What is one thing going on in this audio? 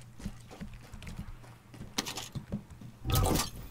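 Footsteps thud on a hollow metal floor.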